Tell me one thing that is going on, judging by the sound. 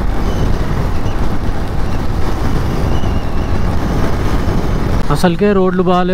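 Wind roars loudly past a moving motorcycle.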